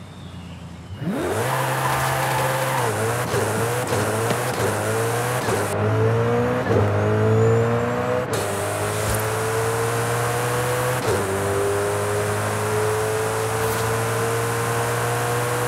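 A sports car engine roars as it accelerates hard, rising in pitch through quick gear shifts.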